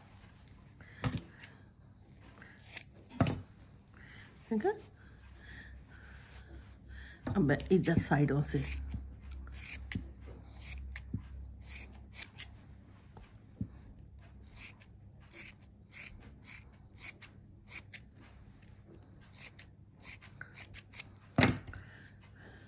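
Scissors snip quickly through yarn, close by.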